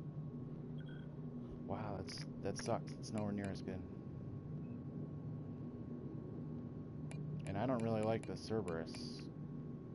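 Soft interface clicks tick as menu items change.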